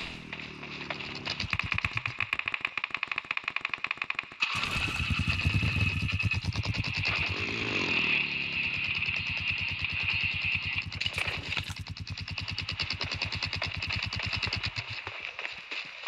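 Footsteps patter quickly over grass.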